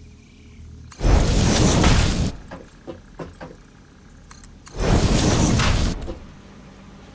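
A building part locks into place with a loud rushing burst.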